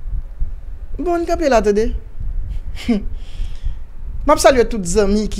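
A man speaks calmly and close into a microphone, in short phrases.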